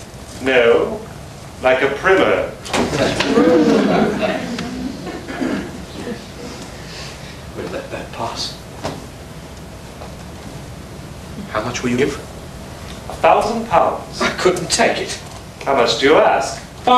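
A man speaks theatrically at a distance, in an echoing room.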